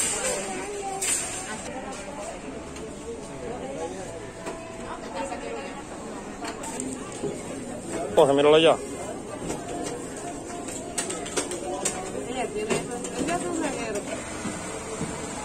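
A young girl talks and babbles close by.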